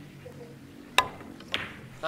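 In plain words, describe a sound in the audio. A cue strikes a pool ball with a sharp click.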